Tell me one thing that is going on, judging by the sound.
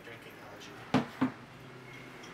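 Hard objects knock twice on a counter.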